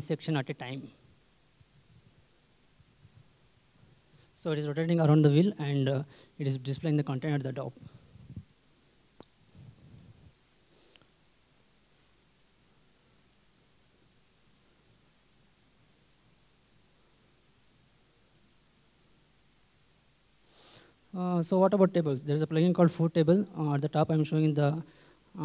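A man speaks into a microphone in a calm, explaining tone, with pauses.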